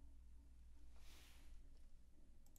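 A hand rubs against a cap and headset, making a brief rustle close by.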